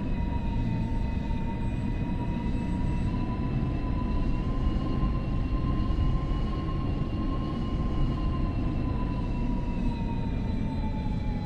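An electric train motor whines steadily, rising slightly in pitch and then falling as it slows.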